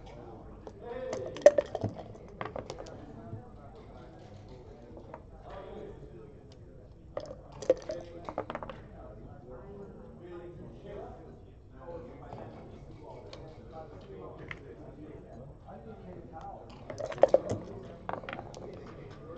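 Game pieces and dice clack sharply on a hard board.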